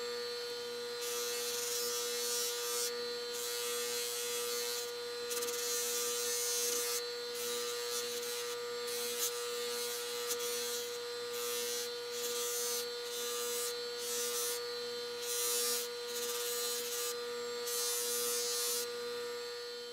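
A metal tool grinds against a spinning polishing wheel in bursts.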